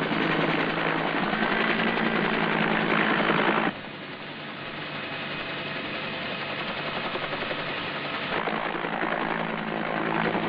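A helicopter's rotor thumps loudly overhead.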